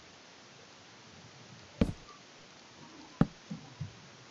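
Wooden blocks are placed with dull knocks.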